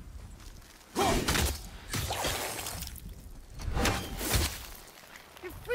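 A heavy axe strikes hard crystal with loud, sharp blows.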